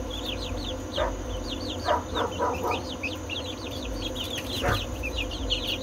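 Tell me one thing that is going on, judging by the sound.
A hen clucks softly now and then.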